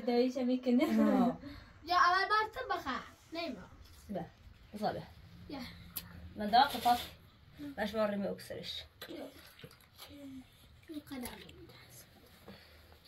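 Children talk nearby.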